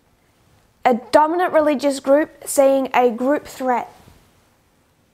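A woman speaks clearly and calmly into a close microphone.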